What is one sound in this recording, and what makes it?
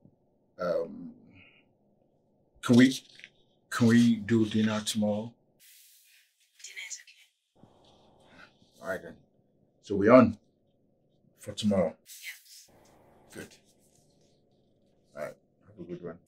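A man talks calmly on a phone, close by, with pauses.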